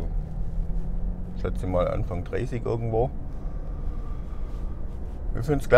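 A car engine hums steadily with low road rumble.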